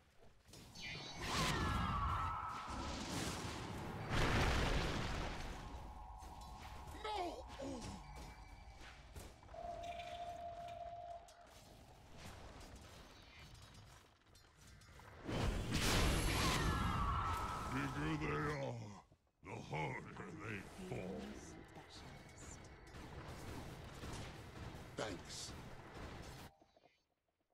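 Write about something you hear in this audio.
Magic blasts burst and crackle in a fantasy battle.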